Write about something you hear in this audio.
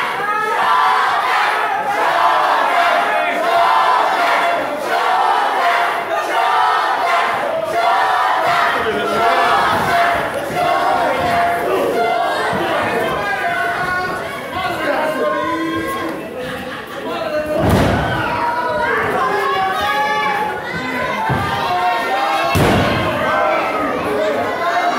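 A crowd chants and cheers loudly in a large echoing hall.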